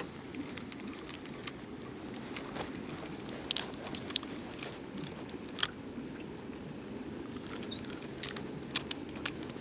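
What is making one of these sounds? Water laps gently against a boat.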